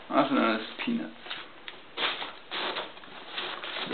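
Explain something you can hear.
Foam packing peanuts rustle and squeak as a hand rummages through them.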